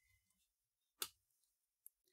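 Scissors snip paper.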